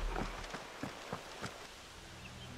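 Footsteps crunch on stone paving.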